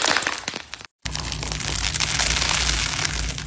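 A tool scratches and crackles across a foam surface.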